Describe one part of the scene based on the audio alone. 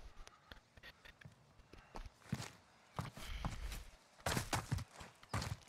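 Footsteps tread quickly on the ground.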